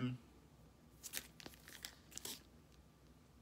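A plastic record sleeve rustles and crinkles in a man's hands.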